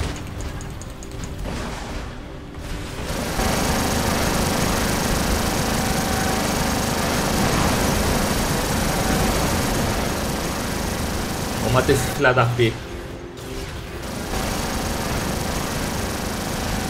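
Heavy metal footsteps of a giant robot thud and clank steadily.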